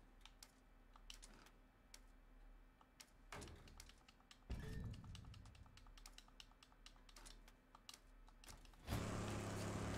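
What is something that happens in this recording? Menu clicks and chimes sound in short bursts.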